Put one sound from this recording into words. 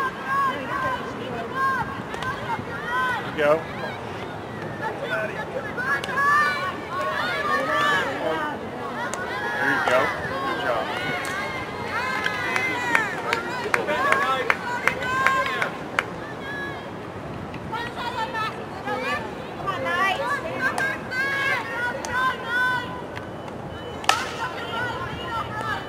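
Young women shout and call out outdoors, some way off.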